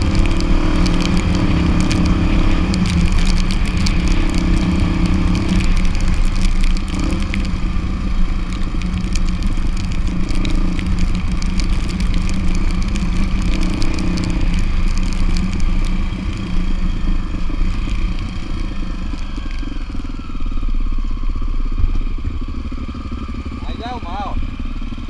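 Tyres rumble over a bumpy dirt road.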